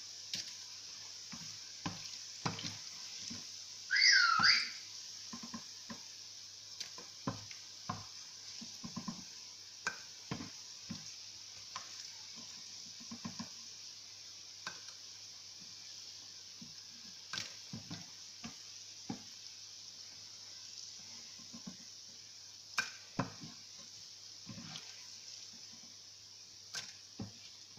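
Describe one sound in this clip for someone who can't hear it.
Dough fritters sizzle in hot oil.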